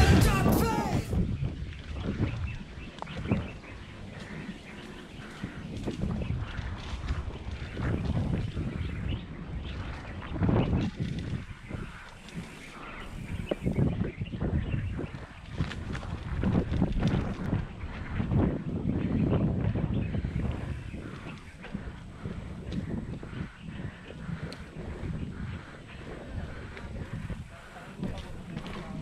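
Bicycle tyres rumble and crunch over dirt and gravel close by.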